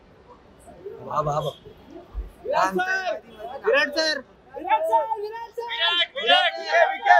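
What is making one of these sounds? Several men in a crowd nearby shout and call out with excitement.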